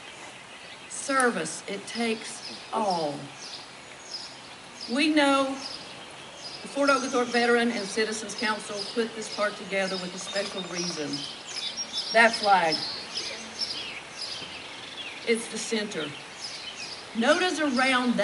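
A woman speaks calmly through a microphone and loudspeaker outdoors.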